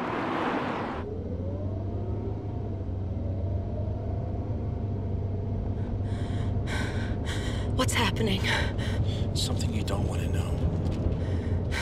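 A car engine drones steadily from inside the car.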